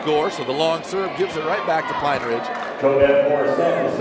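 A volleyball bounces on a wooden floor.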